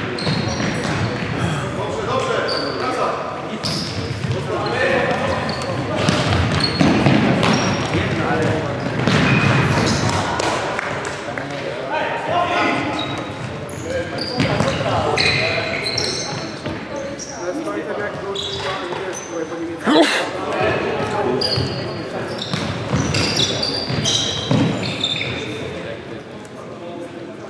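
Young men shout to each other, echoing in a large hall.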